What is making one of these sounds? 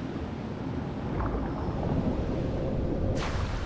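Air rushes past with a deep, swelling roar as a figure falls.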